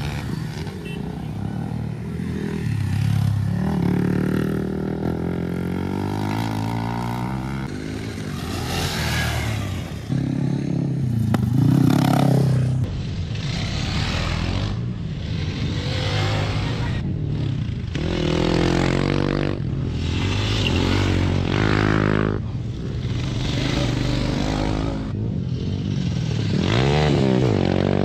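Dirt bike engines rev and roar loudly, rising and falling in pitch.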